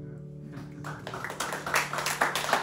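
A plucked string instrument rings and slowly fades.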